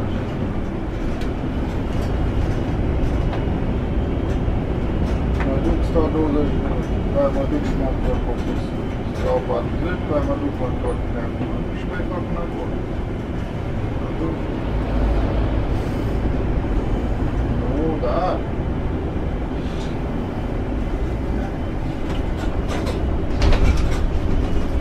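A bus engine hums steadily from inside while driving.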